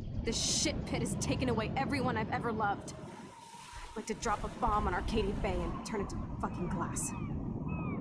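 A young woman speaks bitterly and angrily.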